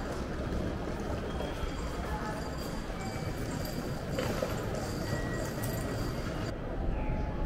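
Footsteps tap on a hard floor nearby.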